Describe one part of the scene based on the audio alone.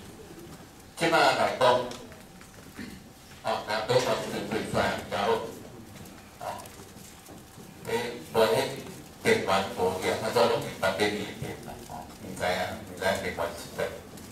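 An elderly man speaks calmly through a microphone, heard over loudspeakers.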